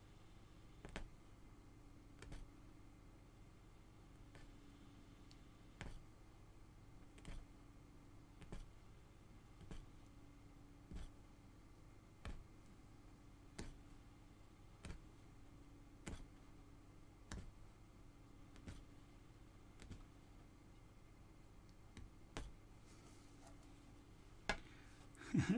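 A punch needle pokes through taut cloth with soft, regular taps.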